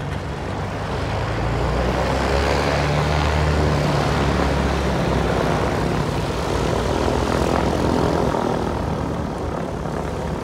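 A second light propeller plane taxis past.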